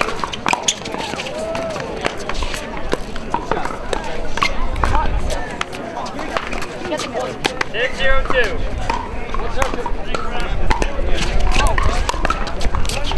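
Paddles pop sharply against a plastic ball in a quick back-and-forth rally.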